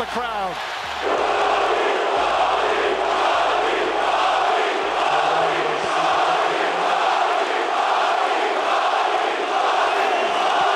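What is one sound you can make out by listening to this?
A large crowd cheers and roars loudly in a big arena.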